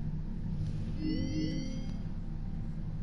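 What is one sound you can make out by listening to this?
A short electronic chime plays as a menu selection changes.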